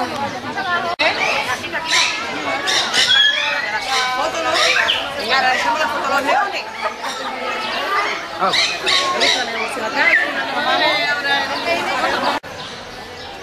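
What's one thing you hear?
Young children shout and squeal excitedly.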